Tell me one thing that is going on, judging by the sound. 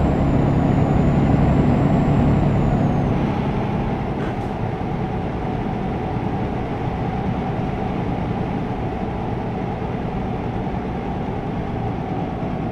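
A truck engine hums steadily while driving, a little louder at first then settling.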